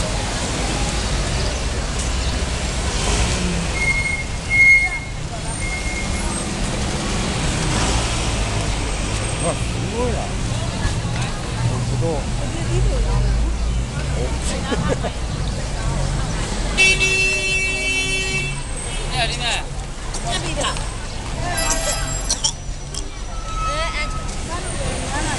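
A busy outdoor crowd murmurs with many voices throughout.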